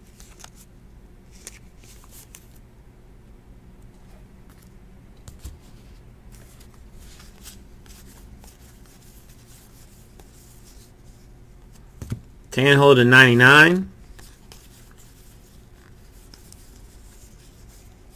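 Trading cards rustle and slide softly as hands sort through them.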